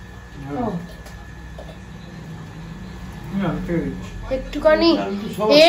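Fingers squish and mix food on a plate.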